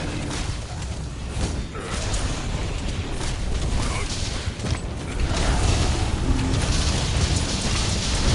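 Heavy impacts thud and crash.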